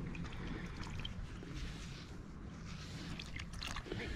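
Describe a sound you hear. Water splashes as a hand scoops through a shallow puddle.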